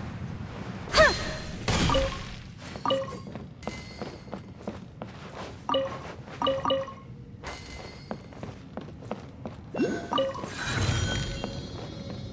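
Short bright chimes ring out now and then.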